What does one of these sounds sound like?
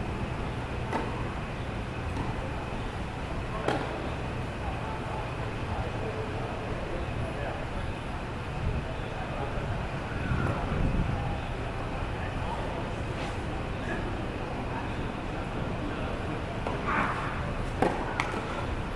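Tennis balls are struck with rackets, echoing in a large open stadium.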